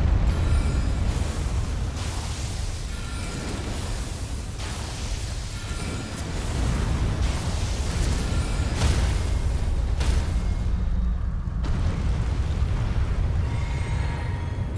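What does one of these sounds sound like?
Magic spells burst and crackle in sharp bursts.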